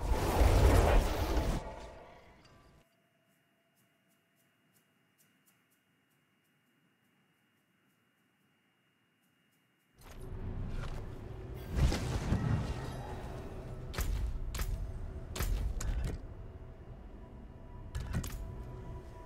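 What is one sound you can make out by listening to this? Game sound effects whoosh and thump.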